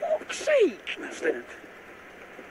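A young man cries out in pain close by.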